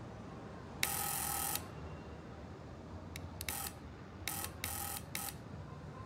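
Intercom buttons click as they are pressed.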